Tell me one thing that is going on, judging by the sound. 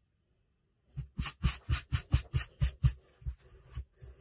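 A hand sweeps across a floured countertop.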